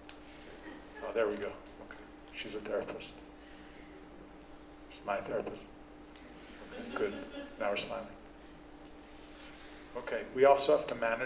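A man speaks slowly and haltingly into a microphone, with pauses.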